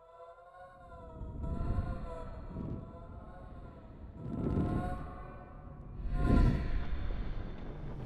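A glowing spirit whooshes through the air in rushing swells.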